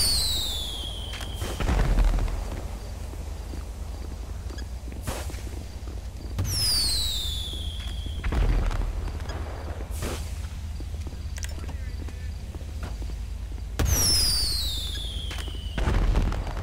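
Fireworks whistle as they shoot up into the sky.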